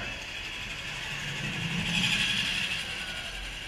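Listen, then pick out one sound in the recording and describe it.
A small go-kart motor hums as a kart passes close by.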